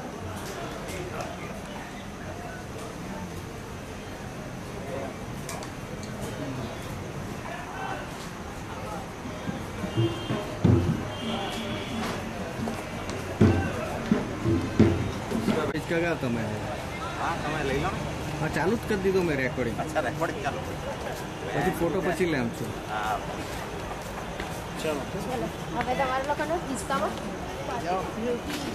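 Several adults chat and laugh close by.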